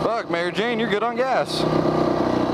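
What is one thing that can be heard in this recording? A motorcycle engine revs up and down in quick bursts.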